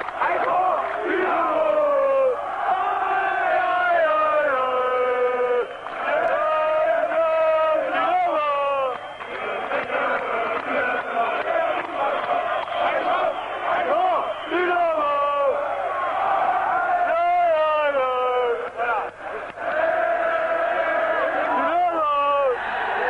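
A large stadium crowd chants and sings loudly in unison, outdoors.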